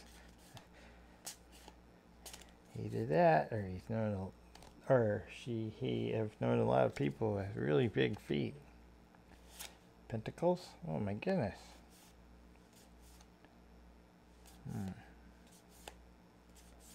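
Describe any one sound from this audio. Stiff cards rustle and flick as they are shuffled.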